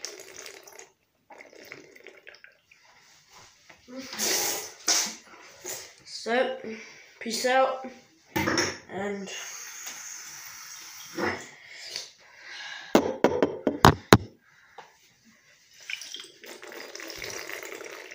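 A young boy gulps water from a glass bottle.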